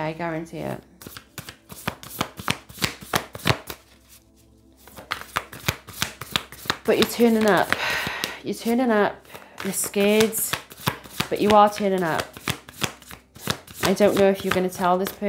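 Cards shuffle with a quick, riffling patter.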